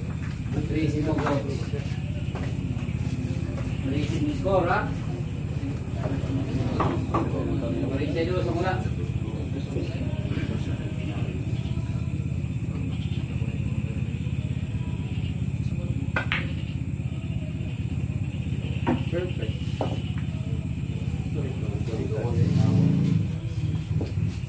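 Men talk and call out nearby with animation.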